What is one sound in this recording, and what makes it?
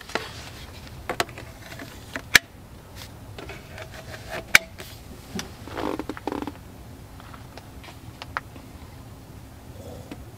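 Plastic blower tubes clack as they are fitted together.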